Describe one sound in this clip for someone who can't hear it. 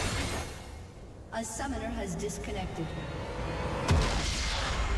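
Game spell effects whoosh and clash during a fight.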